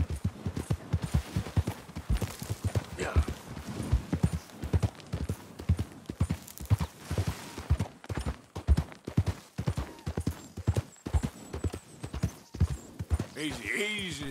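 A horse's hooves thud steadily on grassy ground.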